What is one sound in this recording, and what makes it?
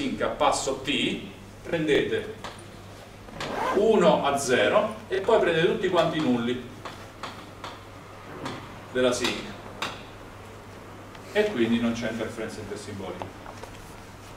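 A young man lectures calmly.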